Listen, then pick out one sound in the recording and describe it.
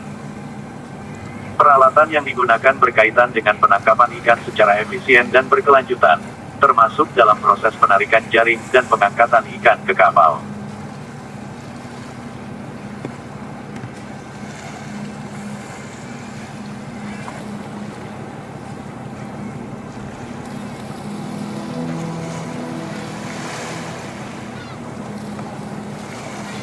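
A ship's engine hums steadily nearby.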